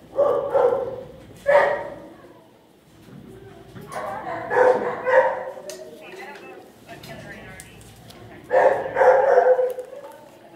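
A dog whines close by.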